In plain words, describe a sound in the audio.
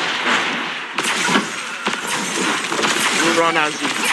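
Weapon blasts and impacts crack in quick bursts.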